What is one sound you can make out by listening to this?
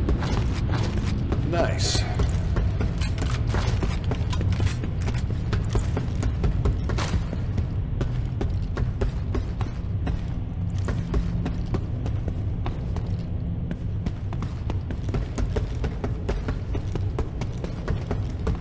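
Heavy footsteps clang on a metal walkway.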